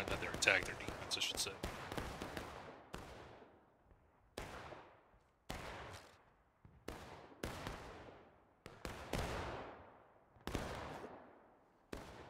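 Rifle shots crack nearby and echo away through the woods.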